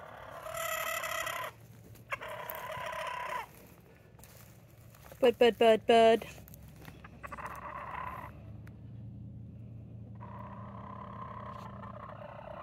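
A hen makes soft, drawn-out croaking calls nearby.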